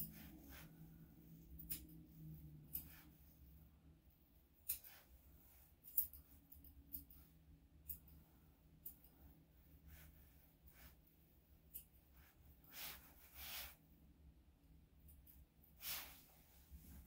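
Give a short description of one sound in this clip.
Scissors snip quietly and sharply, close by, again and again.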